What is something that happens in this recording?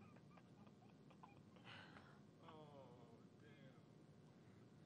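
A young man laughs softly close to a microphone.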